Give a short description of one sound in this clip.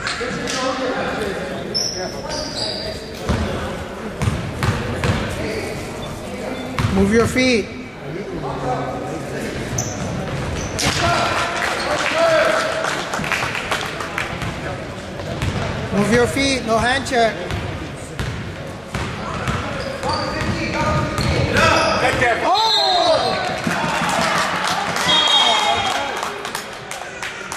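A crowd of spectators talks and cheers.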